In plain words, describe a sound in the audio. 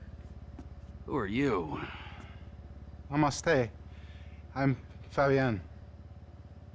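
A man answers calmly, close by.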